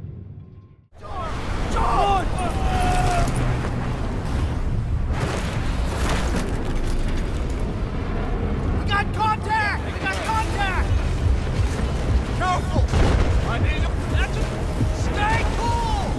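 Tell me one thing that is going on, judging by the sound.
A low rumbling roar of battle fills the air outdoors.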